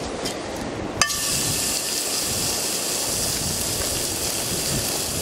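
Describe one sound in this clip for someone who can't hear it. A burger patty sizzles in a hot frying pan.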